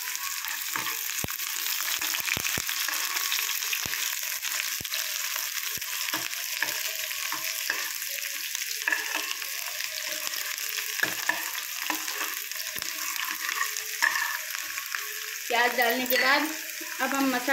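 A metal ladle scrapes against a pan.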